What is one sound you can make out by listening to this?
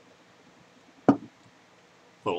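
A glass is set down on a wooden table with a knock.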